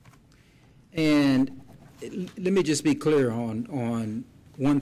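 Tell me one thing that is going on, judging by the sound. A man speaks formally through a microphone in a large room.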